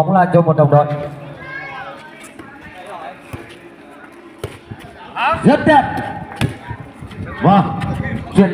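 A hand strikes a volleyball with a sharp slap.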